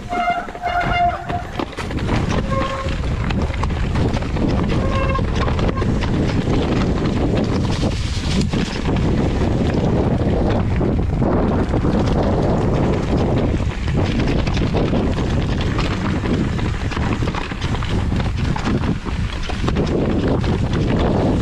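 Wind buffets loudly as a bicycle rides downhill.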